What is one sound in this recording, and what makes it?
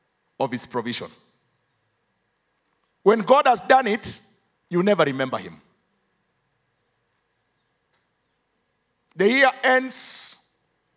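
An older man speaks emphatically into a microphone, pausing between phrases.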